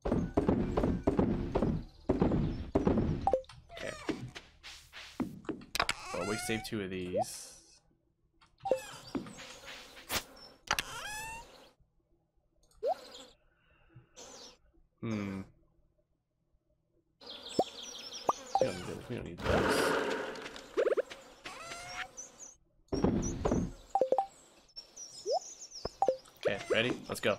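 Short soft game blips sound as menus open and close.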